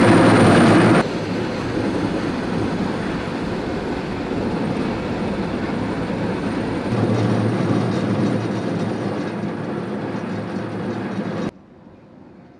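A heavy tracked machine's engine rumbles and clatters.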